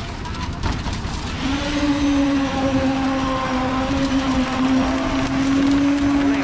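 A wheelbarrow rolls and rattles over steel mesh.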